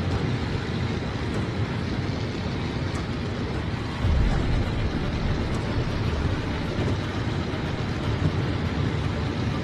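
A propeller plane's engine drones steadily with a rushing roar.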